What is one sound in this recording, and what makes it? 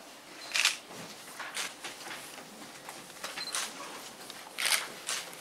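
A small crowd of adults murmurs quietly in a room.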